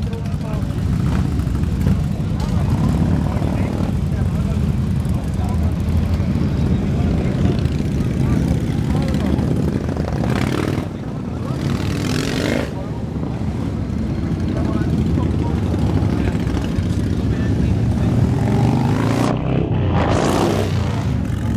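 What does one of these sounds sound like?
Many men and women chat in a lively outdoor crowd.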